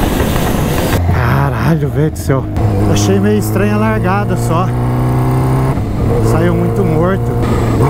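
A supercharged Kawasaki Ninja H2 engine hums while cruising at low speed.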